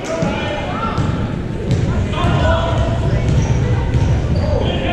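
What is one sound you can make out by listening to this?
A basketball thumps as it bounces on the floor.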